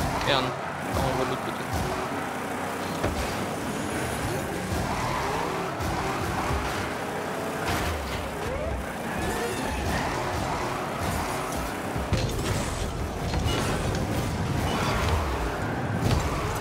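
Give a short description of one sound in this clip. A game car's rocket boost roars in bursts.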